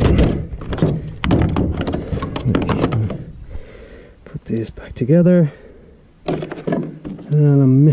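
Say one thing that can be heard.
Metal tools clatter in a plastic case.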